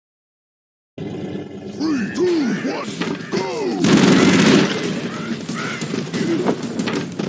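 Game gunfire rattles rapidly.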